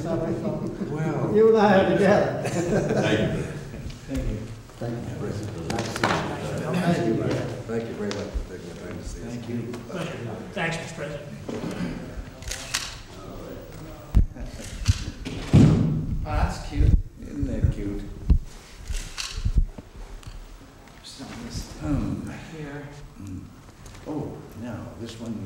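Several men talk and chat close by in a room.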